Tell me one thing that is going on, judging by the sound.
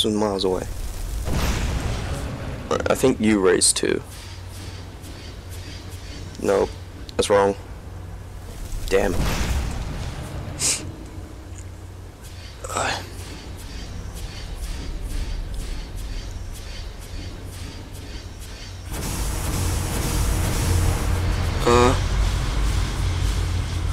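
Magic flames crackle and hiss in the hands.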